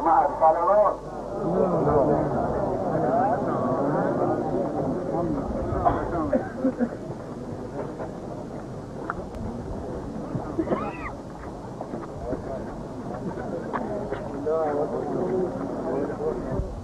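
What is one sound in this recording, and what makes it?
A crowd of men murmurs and talks quietly.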